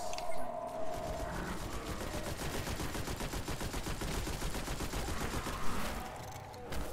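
Rapid gunfire rattles from a video game.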